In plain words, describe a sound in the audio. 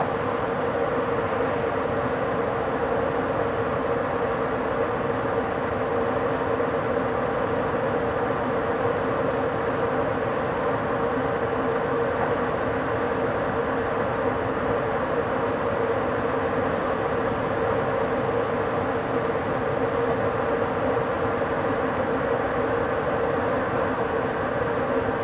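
Train wheels rumble steadily along the rails.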